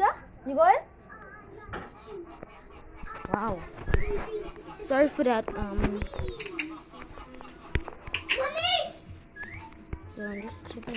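A child talks with animation close to a microphone.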